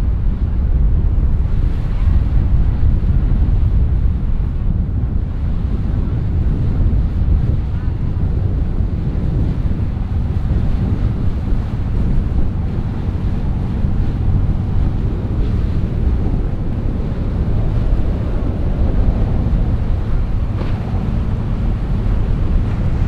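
A motorboat engine rumbles steadily close by.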